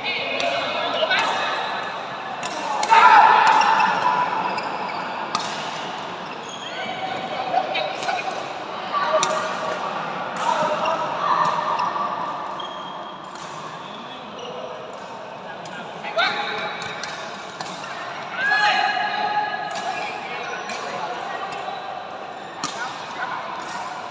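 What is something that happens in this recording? Sports shoes squeak on a hard court floor.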